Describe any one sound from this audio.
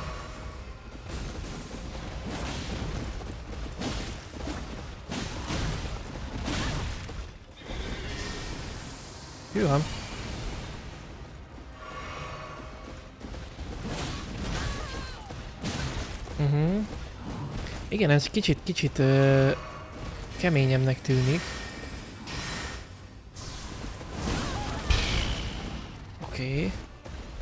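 A young man talks with animation into a microphone close by.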